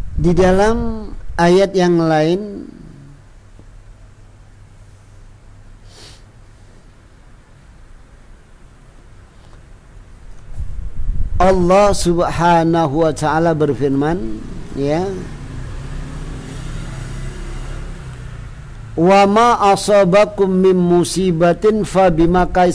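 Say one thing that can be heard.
A middle-aged man chants melodiously into a microphone, with pauses between phrases.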